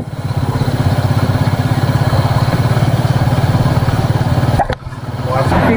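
A motorcycle engine chugs steadily at low speed.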